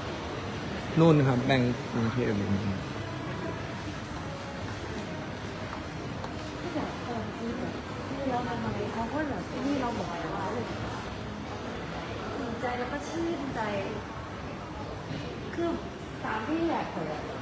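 A young man talks casually close to a phone's microphone.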